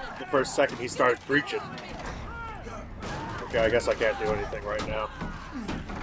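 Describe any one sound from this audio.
A man shouts angrily and in panic close by.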